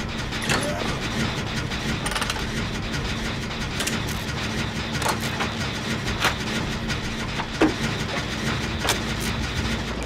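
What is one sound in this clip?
A machine clanks and rattles as it is worked on.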